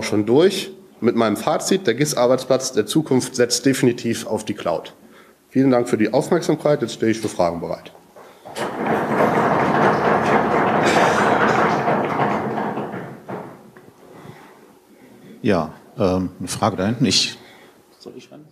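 A man speaks through a microphone in a room with a slight echo.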